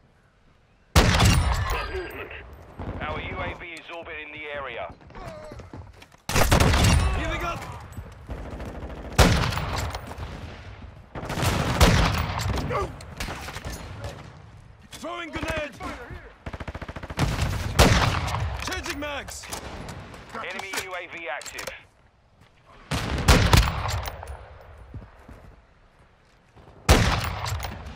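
A sniper rifle fires loud, booming shots that echo away.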